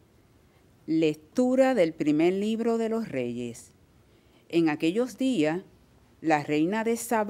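A second woman reads aloud calmly into a microphone.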